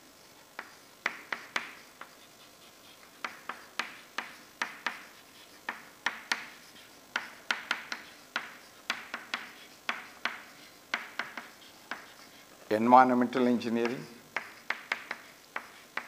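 Chalk taps and scrapes on a board in quick bursts.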